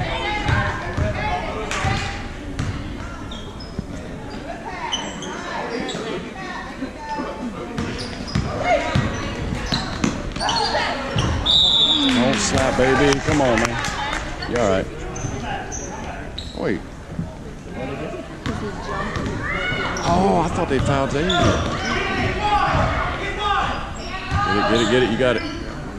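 A basketball bounces on a gym floor.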